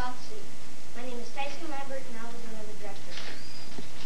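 A child speaks clearly in front of an audience.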